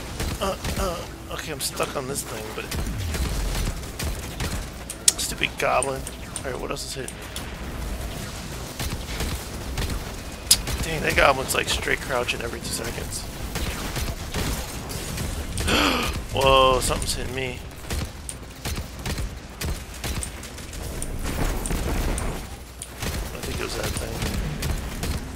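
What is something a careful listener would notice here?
Rapid gunfire rattles and pops.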